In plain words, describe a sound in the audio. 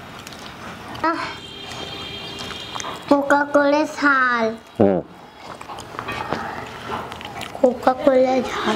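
A man makes drawn-out, pleased humming sounds up close while eating.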